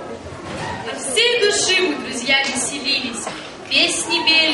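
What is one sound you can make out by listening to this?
A teenage girl recites aloud in a large hall.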